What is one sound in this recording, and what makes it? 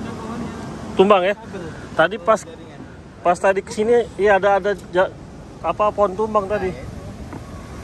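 A young woman sings nearby.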